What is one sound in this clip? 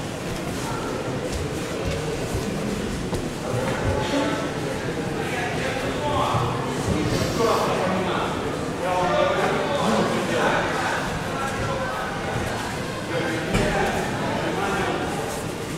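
Men talk and murmur in a group, echoing in a large hall.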